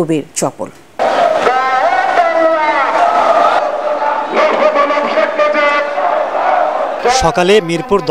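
A large crowd shouts and chants outdoors.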